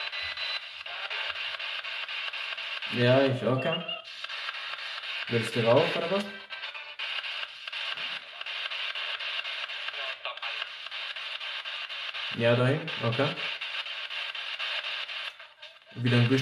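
A handheld radio hisses with steady static.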